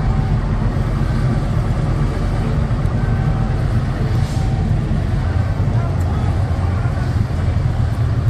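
A heavy crane engine rumbles steadily nearby.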